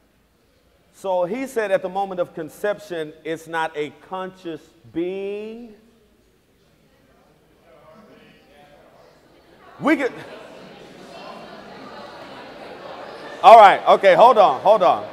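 A man speaks with animation through a microphone in a large hall.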